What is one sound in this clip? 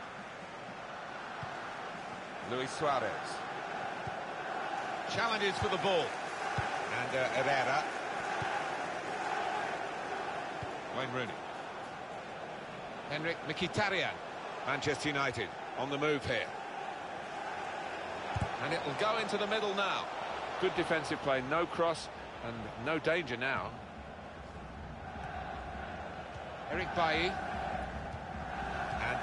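A large crowd murmurs steadily in a stadium.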